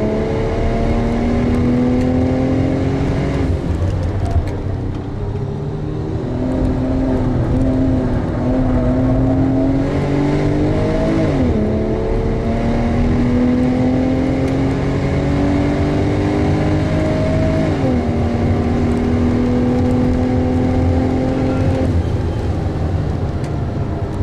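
A car engine roars loudly from inside the cabin, revving up through the gears and dropping with each gear change.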